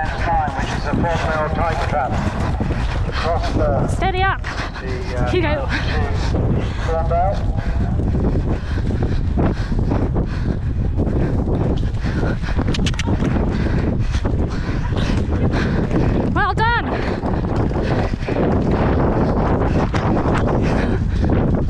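Horse hooves pound rapidly on grass at a gallop.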